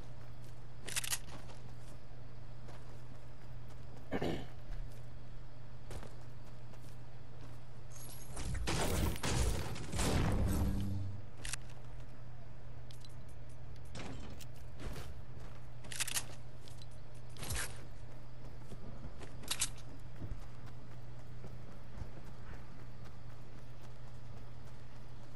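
Footsteps thud on grass.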